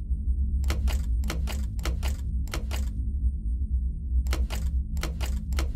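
Metal buttons clunk and rattle as they are pressed in a panel.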